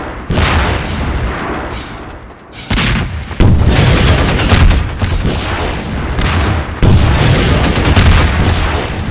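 Rockets explode with deep booms.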